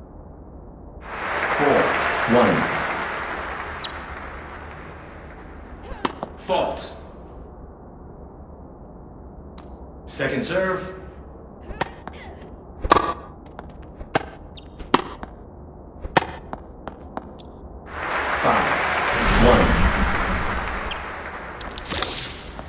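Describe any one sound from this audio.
A crowd cheers and applauds after a point.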